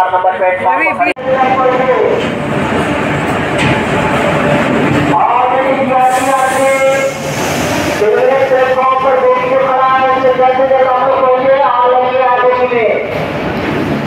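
A man calls out loudly in long drawn-out shouts nearby.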